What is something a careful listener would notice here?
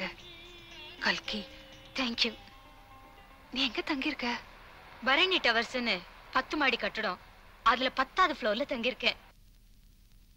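A second young woman answers, laughing and talking with animation.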